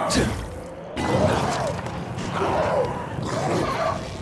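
A fire bursts into flame and roars.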